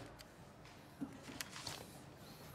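A sheet of paper rustles under a hand.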